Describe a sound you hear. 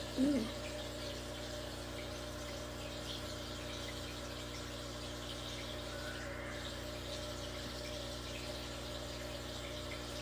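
An aquarium filter hums steadily.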